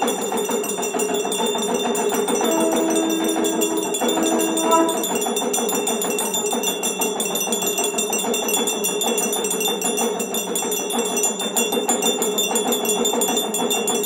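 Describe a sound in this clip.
A small hand bell rings steadily throughout.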